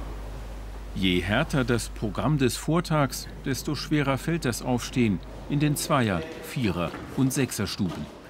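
A young man speaks sleepily nearby.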